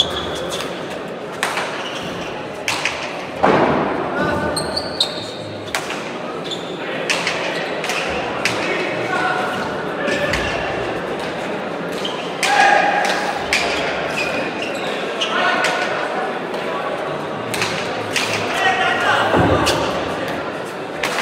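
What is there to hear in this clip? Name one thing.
A ball smacks sharply against walls and hands, echoing in a large hall.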